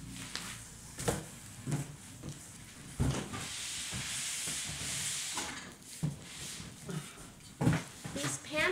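Cardboard boxes rustle and thump as they are handled.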